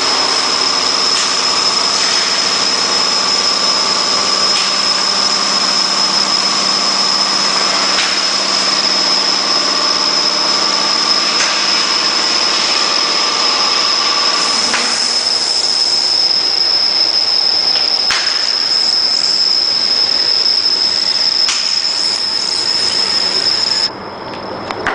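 A laminating machine hums steadily with a high whine as its rollers turn.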